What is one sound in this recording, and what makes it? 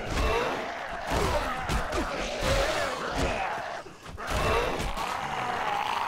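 A wooden club thuds against a body.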